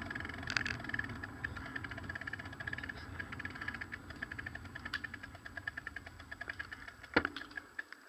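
A bicycle freewheel ticks rapidly while coasting.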